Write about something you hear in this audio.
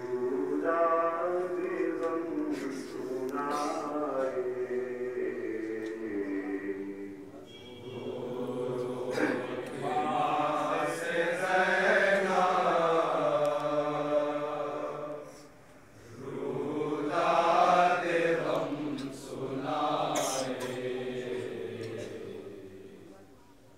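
A group of men chant along in unison.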